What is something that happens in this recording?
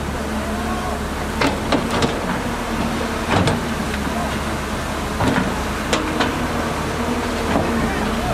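A bulldozer engine drones in the distance.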